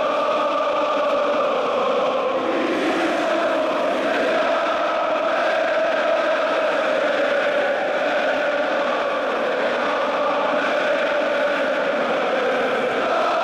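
A huge stadium crowd chants and sings loudly in unison, echoing around the stands.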